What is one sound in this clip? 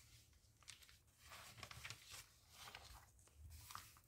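Magazine pages rustle as they are turned.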